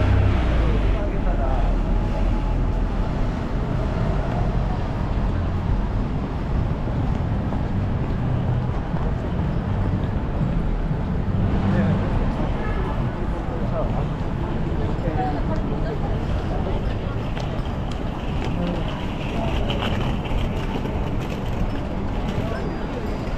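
A busy city street hums with traffic outdoors.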